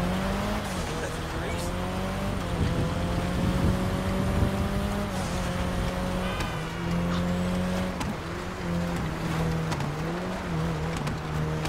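A car engine revs and hums steadily, shifting in pitch.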